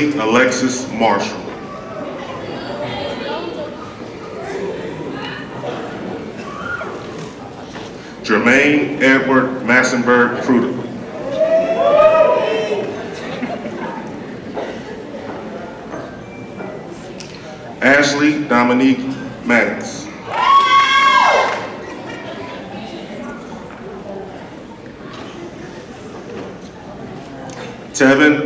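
A man reads out names over a loudspeaker in a large echoing hall.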